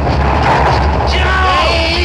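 A man shouts in strain.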